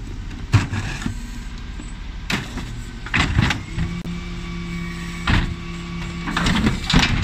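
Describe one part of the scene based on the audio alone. A lorry's engine idles with a low rumble.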